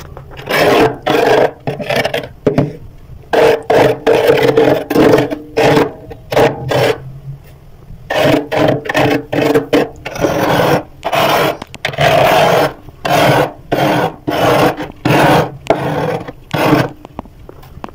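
A metal spoon scrapes through thick freezer frost in short strokes.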